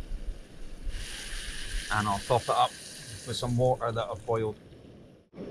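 Water pours from a kettle into a pot.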